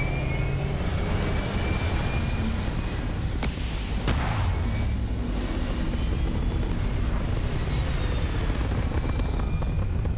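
Spacecraft engines roar as a ship lifts off and flies away.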